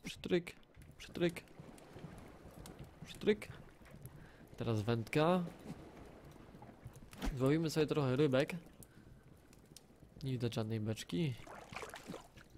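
Water laps gently against a wooden raft.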